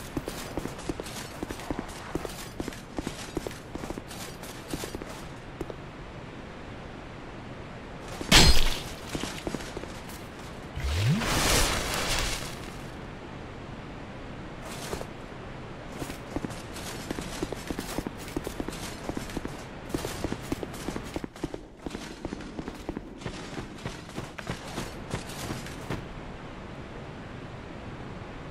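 Armoured footsteps clatter on stone.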